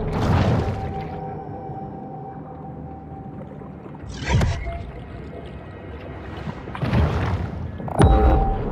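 A large creature swims underwater with deep whooshing surges.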